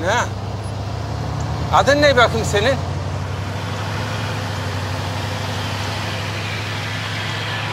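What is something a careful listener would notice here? A truck engine hums steadily as the truck drives along.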